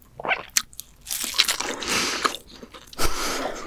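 A young woman bites into a crispy slice close to a microphone.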